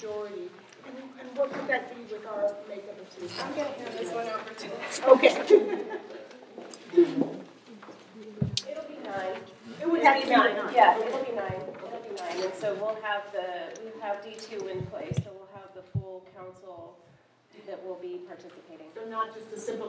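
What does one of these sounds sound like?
A woman speaks calmly to a room, heard from a short distance.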